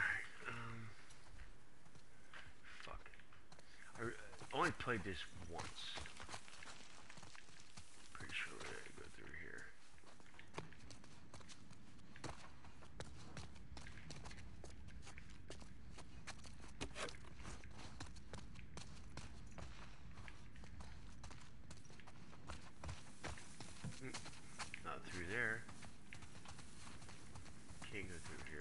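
Footsteps tread steadily over grass and rubble.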